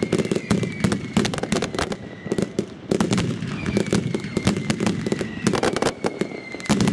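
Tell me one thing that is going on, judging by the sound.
Firework rockets whistle as they rise.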